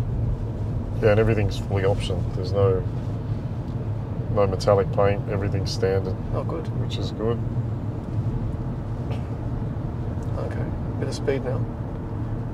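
A man speaks calmly from close by, in short bursts.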